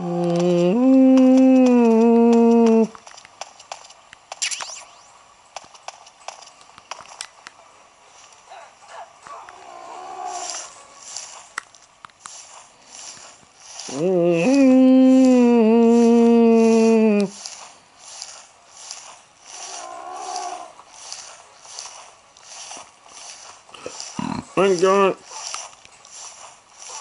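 A handheld game plays loud droning tones and sound effects through its small speaker.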